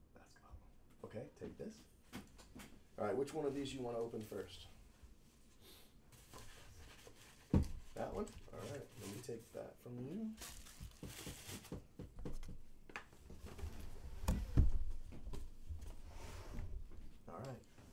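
Cardboard boxes scrape and bump as they are handled.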